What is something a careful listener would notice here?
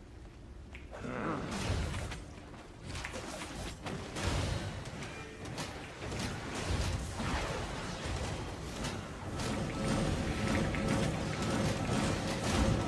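Game battle sounds of spells and strikes clash loudly.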